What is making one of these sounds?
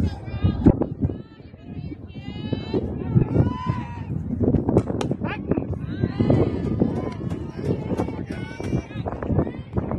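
Young women cheer and shout nearby, outdoors.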